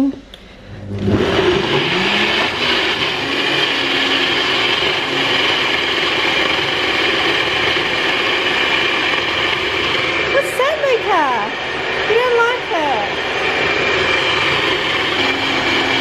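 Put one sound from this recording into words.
A blender motor whirs loudly and steadily.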